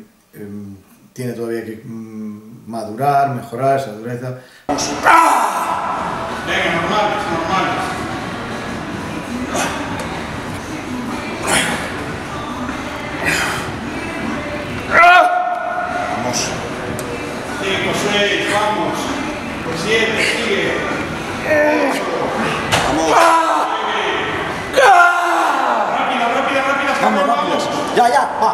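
A man grunts and breathes hard with effort.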